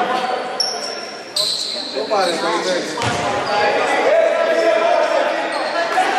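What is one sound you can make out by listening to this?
Spectators and players call out in a large echoing hall.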